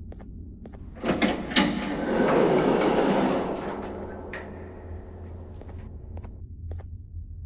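Heavy sliding doors rumble open.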